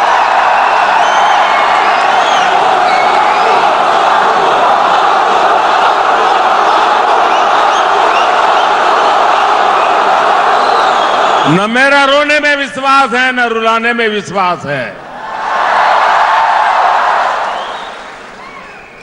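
A large crowd cheers and applauds loudly in a big echoing hall.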